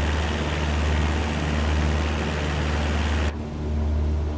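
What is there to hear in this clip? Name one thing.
A small propeller plane's engine drones steadily, heard from outside with rushing wind.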